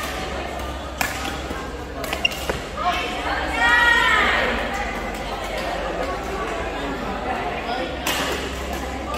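A racket strikes a shuttlecock with sharp pops in a large echoing hall.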